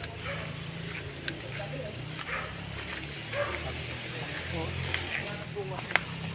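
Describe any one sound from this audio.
Footsteps rustle and crunch through dense undergrowth.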